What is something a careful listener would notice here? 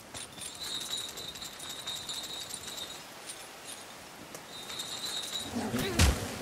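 A metal chain rattles and clinks.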